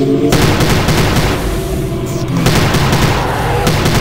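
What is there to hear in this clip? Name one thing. Flames roar from a flamethrower.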